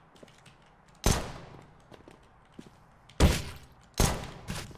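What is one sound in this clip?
A pistol fires single shots, each with a ringing echo.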